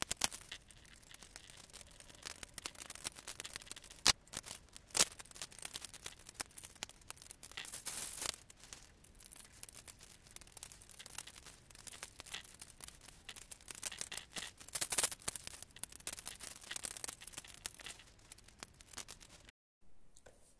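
Plastic bricks click and clatter as they are fitted together by hand.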